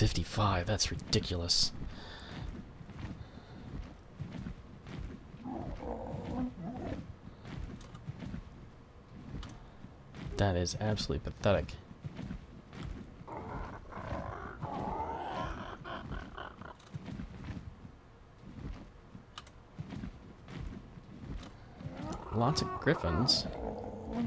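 A large winged creature flaps its wings with heavy whooshing beats.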